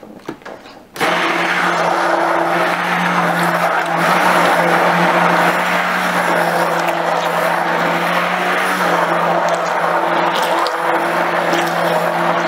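A stick blender whirs loudly, blending thick liquid.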